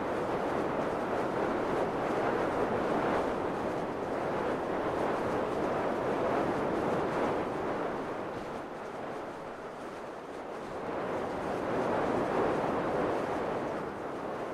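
Wind rushes loudly and steadily past a falling skydiver.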